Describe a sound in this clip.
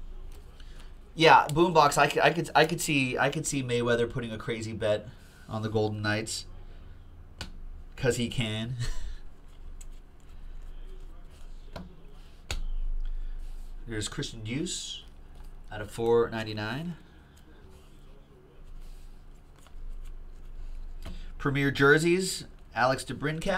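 Trading cards slide and rustle in hands.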